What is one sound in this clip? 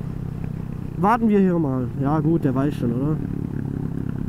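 A motorcycle engine revs up and down several times.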